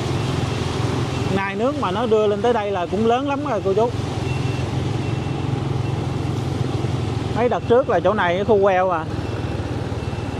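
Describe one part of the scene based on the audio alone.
Tyres hiss and splash through shallow floodwater.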